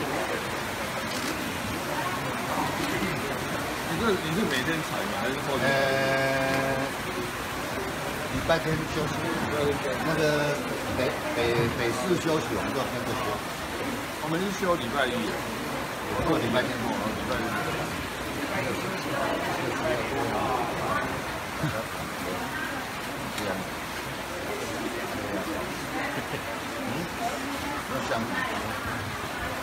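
Several men and women chatter nearby.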